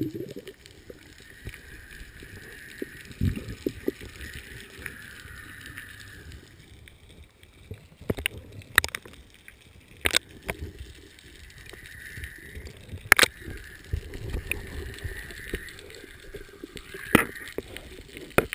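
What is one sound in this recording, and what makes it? A diver breathes in through a regulator with a hissing rasp underwater.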